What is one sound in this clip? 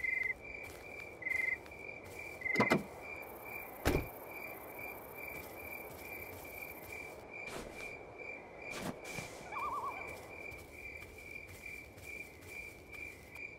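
Footsteps tread steadily over hard ground.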